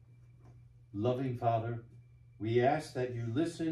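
An elderly man speaks slowly and clearly through a microphone.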